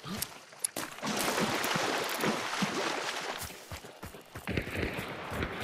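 Footsteps rustle through dry grass and brush.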